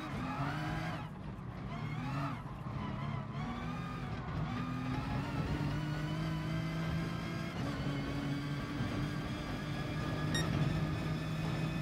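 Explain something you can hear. Tyres hum on the track at high speed.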